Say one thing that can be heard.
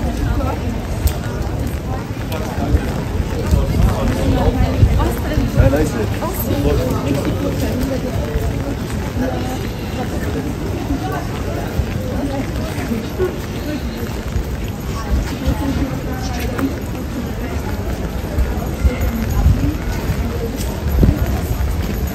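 Footsteps tap on wet paving stones.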